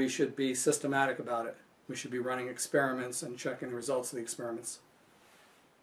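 A middle-aged man speaks calmly and clearly into a close microphone.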